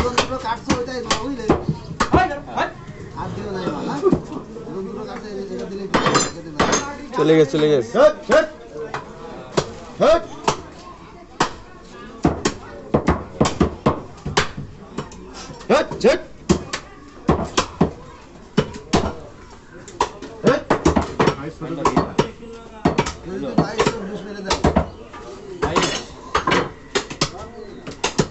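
A cleaver chops meat on a wooden block with sharp, repeated thuds.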